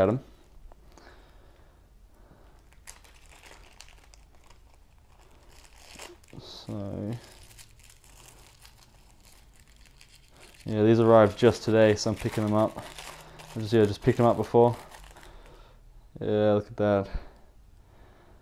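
A plastic bag crinkles softly as fingers open it.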